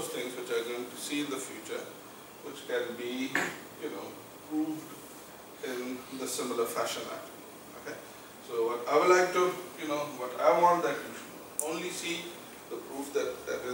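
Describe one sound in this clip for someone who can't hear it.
A man lectures calmly, heard in a room with a slight echo.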